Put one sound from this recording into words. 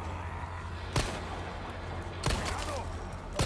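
A pistol fires sharp gunshots.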